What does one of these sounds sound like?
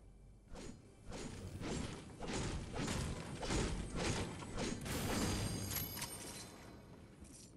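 A treasure chest opens with a rising, sparkling chime.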